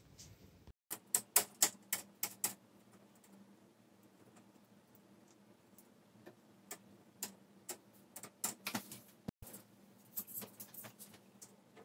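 Small plastic parts click and tap as hands pry apart a thin panel.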